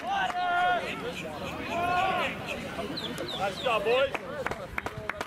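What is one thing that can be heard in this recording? Men shout to each other across an open playing field.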